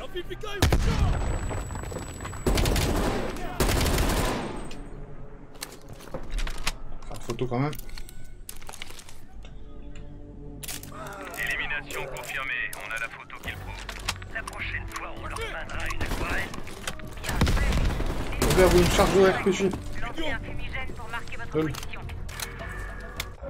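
Gunshots crack loudly in a game.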